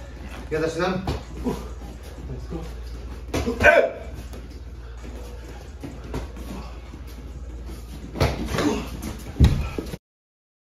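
Gloved punches smack against pads.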